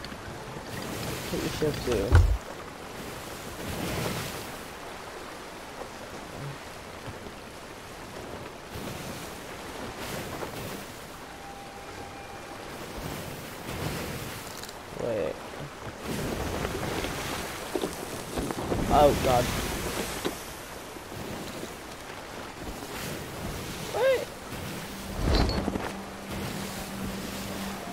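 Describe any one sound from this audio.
Waves wash and slosh against a wooden ship's hull.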